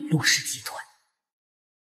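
A woman speaks firmly and coldly, close by.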